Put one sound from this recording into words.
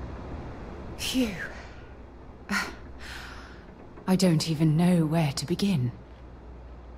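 A young woman sighs and speaks with feeling, close by.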